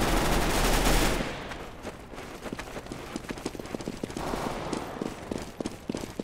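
Footsteps patter on hard ground.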